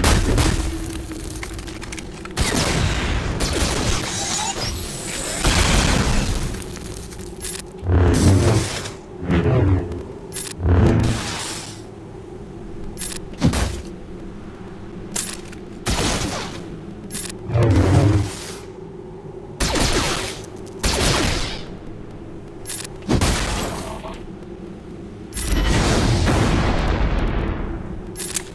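Blasters fire in short bursts.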